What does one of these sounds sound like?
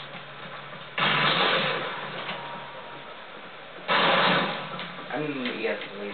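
Gunshots blast in loud bursts through a television speaker.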